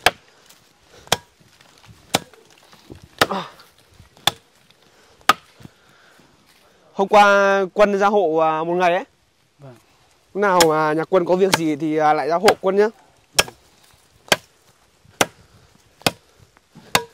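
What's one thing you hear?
A machete chops into wood with sharp, regular blows.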